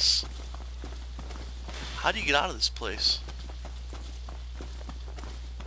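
Footsteps tread over grass and undergrowth.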